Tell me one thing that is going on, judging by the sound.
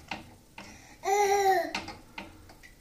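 A dog's squeaky toy squeaks.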